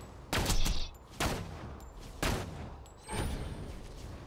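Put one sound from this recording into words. Rifle shots crack several times, each followed by a ringing echo.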